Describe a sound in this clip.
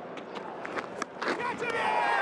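A cricket ball is struck by a bat with a sharp crack.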